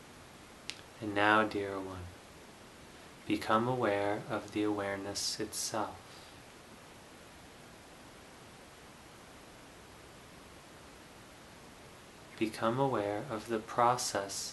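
A young man speaks calmly and slowly, close by, with long pauses.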